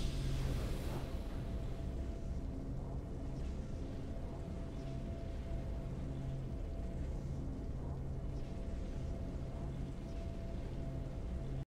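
Triumphant music plays softly and steadily.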